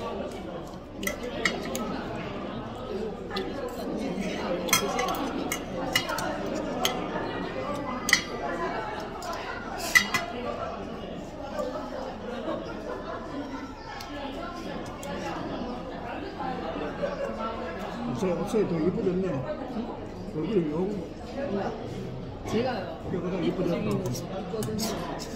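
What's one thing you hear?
Metal utensils clink and scrape against dishes.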